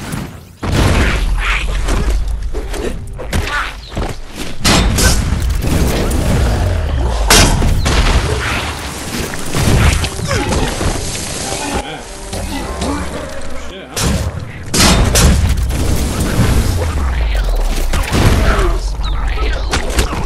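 Fiery explosions boom and crackle.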